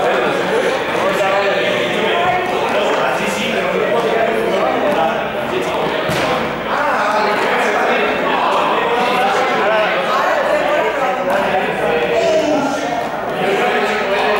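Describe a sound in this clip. A young man talks in an echoing hall.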